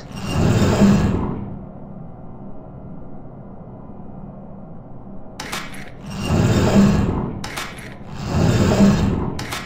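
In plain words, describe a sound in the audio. Heavy metal bars slide and grind into place with a deep rumble.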